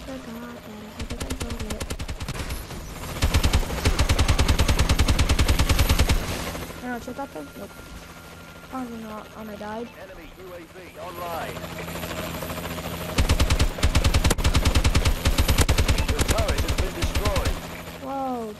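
A heavy gun fires rapid, booming bursts.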